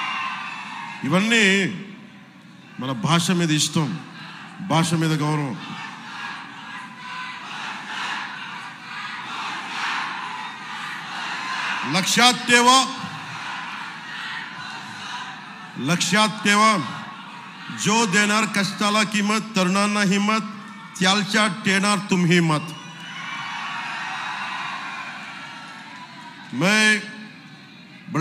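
A man gives a speech loudly through a microphone and loudspeakers, in short forceful bursts.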